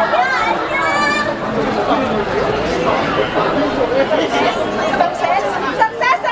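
A crowd of young women chatter and call out excitedly nearby.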